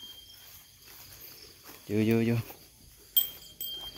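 A cow tears at grass as it grazes close by.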